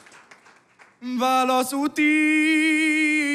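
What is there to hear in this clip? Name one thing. A violin plays a lively melody.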